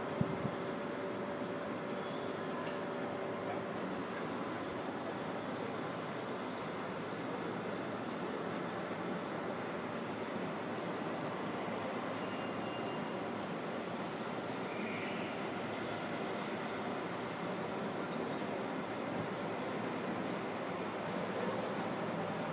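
City traffic hums steadily far below.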